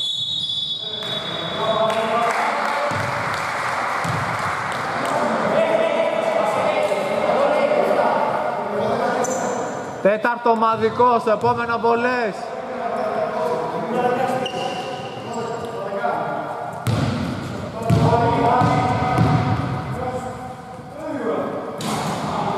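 Men shout and call out to each other in a large echoing gym.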